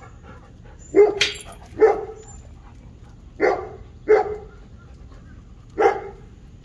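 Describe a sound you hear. A dog barks sharply several times close by.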